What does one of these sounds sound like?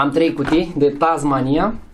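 A small cardboard box rattles in a man's hands.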